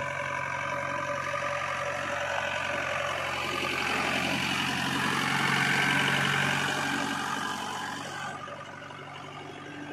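A diesel engine idles with a steady rumble.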